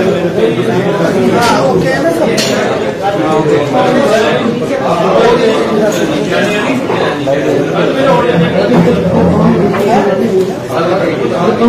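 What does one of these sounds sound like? A middle-aged man speaks with animation close to microphones.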